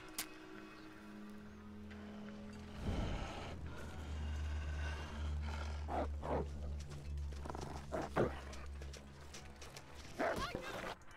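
A torch flares up and burns with a low roar.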